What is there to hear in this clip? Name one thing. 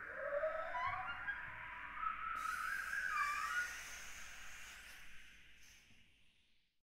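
A piano plays softly and its notes ring out, then fade away.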